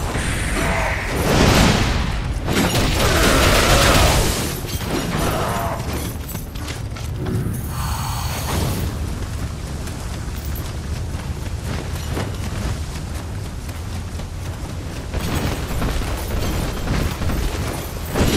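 Heavy impacts thud and crash.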